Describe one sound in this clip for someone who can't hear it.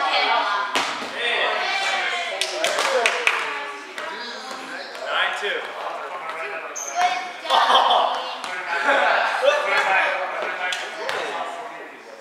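Men and women chatter and call out in a large echoing hall.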